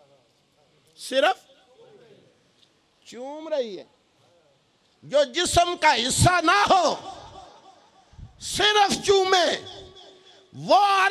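A man preaches passionately into a microphone, his voice loud and echoing through a loudspeaker.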